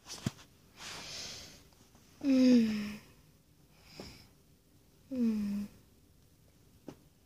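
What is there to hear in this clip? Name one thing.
Fabric rustles as a soft toy is handled close by.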